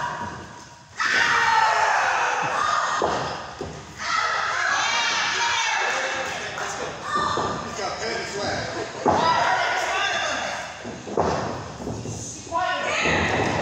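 Bodies thud heavily on a wrestling ring's mat.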